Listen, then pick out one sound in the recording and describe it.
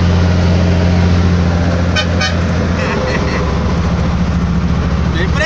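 An old FNM diesel truck engine drones under load close alongside.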